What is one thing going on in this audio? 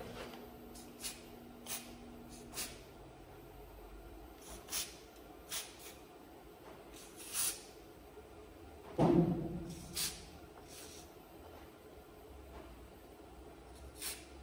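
An aerosol can hisses in short sprays.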